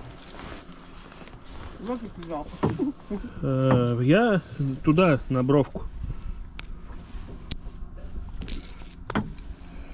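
Hands rustle and tug at a mesh fishing net.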